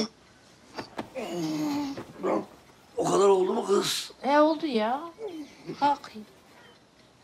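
A man groans and speaks groggily.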